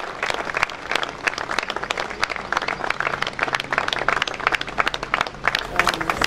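A large crowd outdoors applauds steadily.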